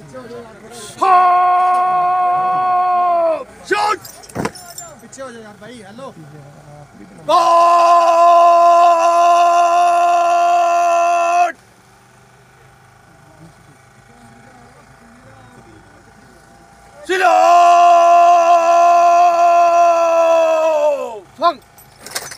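A large crowd of young people shouts together in long, drawn-out calls.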